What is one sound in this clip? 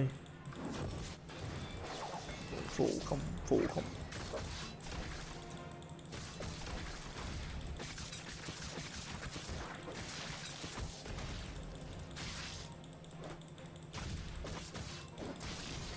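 Game sword strikes and spell effects clash and whoosh.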